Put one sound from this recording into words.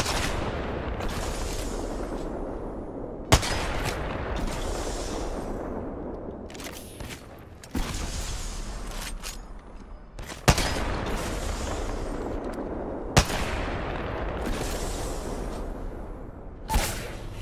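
A rifle bolt is worked with a metallic clack after each shot.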